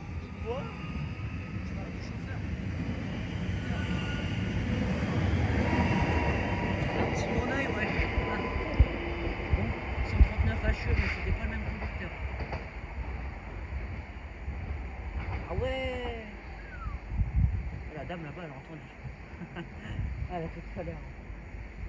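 An electric train pulls away and rumbles off into the distance, slowly fading.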